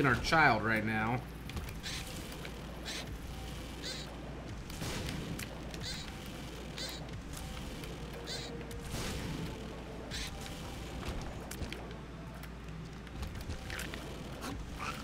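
Video game shots and effects chirp and burst in quick succession.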